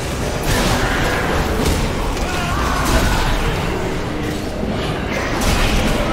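Magic spells whoosh and crackle amid clashing combat.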